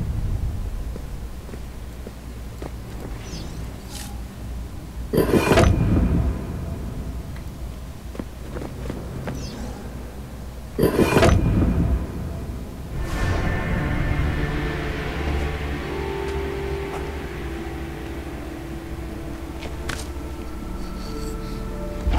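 Footsteps scuff on stone in an echoing passage.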